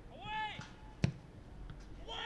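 A football thuds off a player's foot with a kick.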